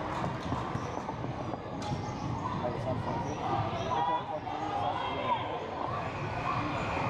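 Sneakers squeak on a gym floor.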